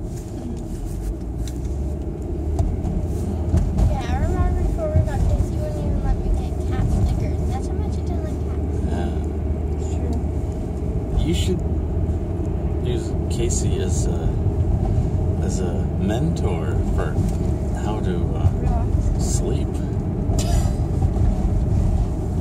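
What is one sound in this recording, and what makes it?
A woman laughs softly close by.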